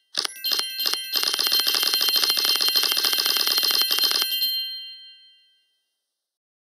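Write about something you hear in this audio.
A bright electronic jingle rings out and fades.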